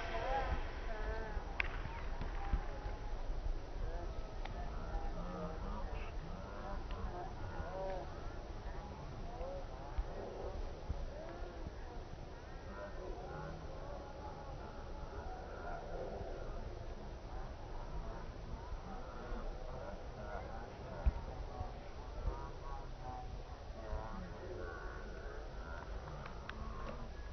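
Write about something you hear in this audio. Players shout and call to each other across an open field outdoors.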